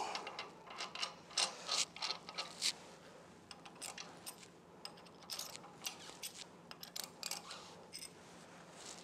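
Small metal parts click and clink as a hand handles them.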